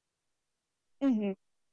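A man speaks briefly.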